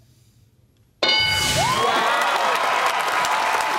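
A chime rings out as an answer is revealed.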